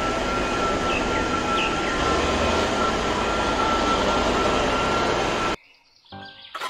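A large truck engine rumbles steadily close by.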